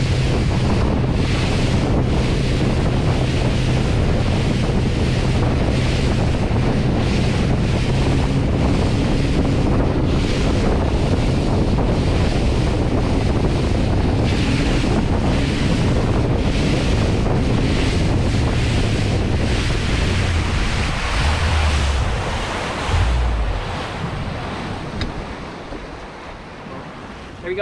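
Wind buffets loudly past the boat.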